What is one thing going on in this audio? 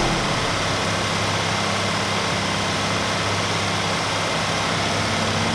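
A heavy truck engine rumbles steadily as the truck drives along.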